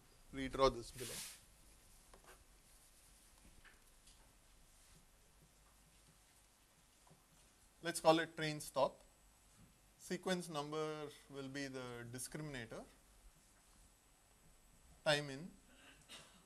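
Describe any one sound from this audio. A man speaks calmly in short bursts.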